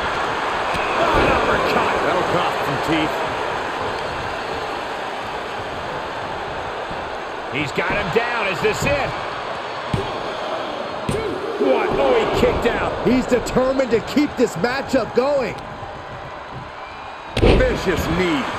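Bodies slam heavily onto a wrestling ring mat with deep thuds.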